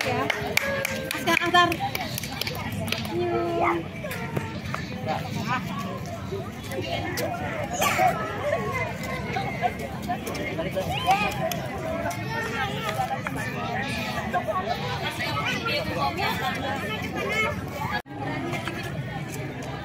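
A crowd of children and women chatter and call out nearby outdoors.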